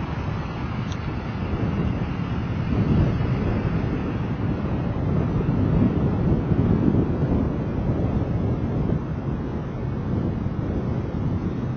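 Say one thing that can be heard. Traffic hums nearby on a city street.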